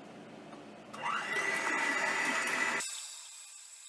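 A hand mixer whirs loudly, beating eggs.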